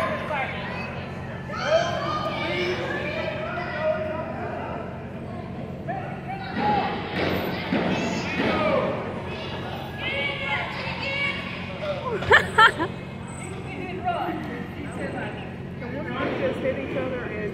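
Men shout and call out in an echoing hall.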